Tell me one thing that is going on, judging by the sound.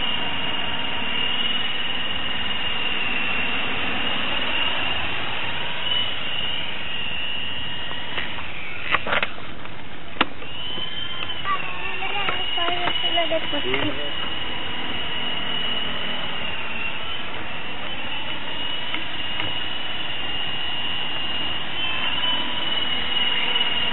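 Wind rushes past in a steady roar.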